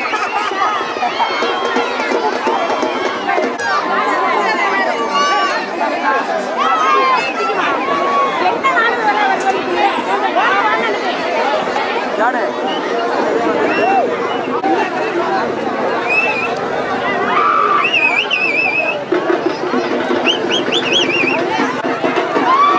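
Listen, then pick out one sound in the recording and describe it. A crowd of men talks and shouts outdoors.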